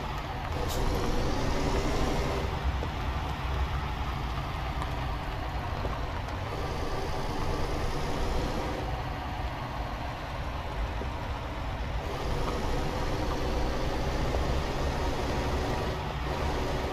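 A heavy truck engine rumbles steadily, rising and falling as it labours.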